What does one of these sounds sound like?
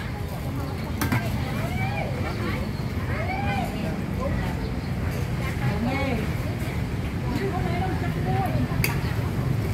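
A metal ladle clinks against a large metal pot.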